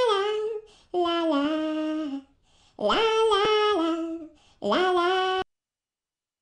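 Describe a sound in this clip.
A woman sings a short melody in a bright, animated voice.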